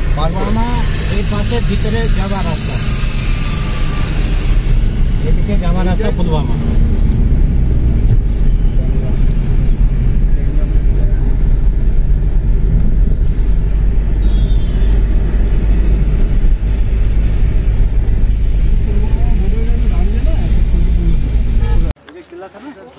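A car engine hums low and steady inside a moving car.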